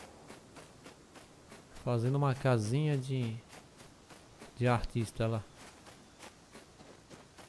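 Footsteps fall steadily on grass.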